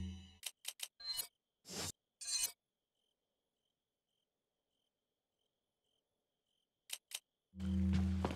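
Short menu beeps sound.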